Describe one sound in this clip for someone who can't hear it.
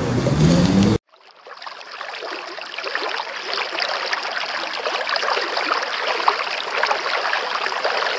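Water ripples and splashes softly.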